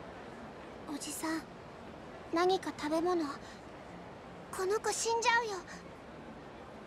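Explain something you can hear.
A young girl speaks pleadingly, close by.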